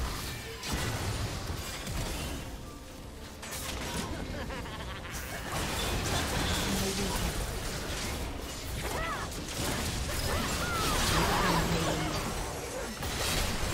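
Spell effects crackle and burst in a video game fight.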